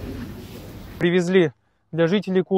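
A young man speaks calmly close to the microphone.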